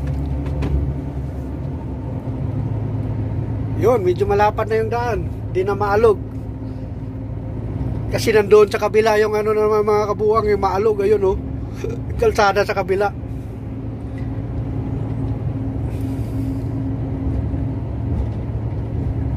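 A large vehicle's engine hums steadily from inside the cab.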